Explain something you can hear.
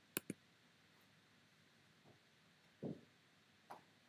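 A short electronic chime plays as a game turn changes.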